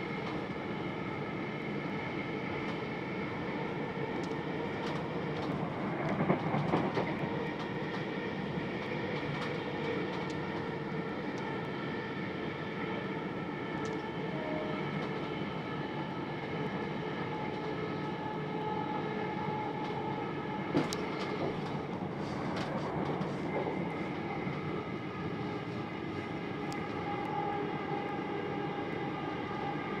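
A train rumbles steadily along the tracks with a droning motor hum.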